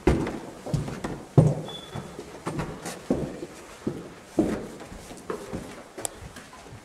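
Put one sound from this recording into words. Footsteps thud on a hard floor nearby.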